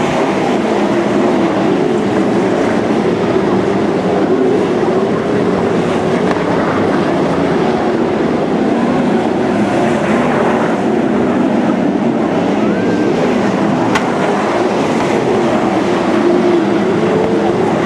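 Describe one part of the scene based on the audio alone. Several race car engines roar loudly, rising and falling in pitch as the cars speed around a track.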